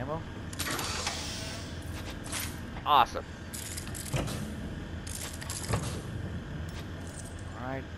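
Short game chimes and swooshes sound as items are picked up.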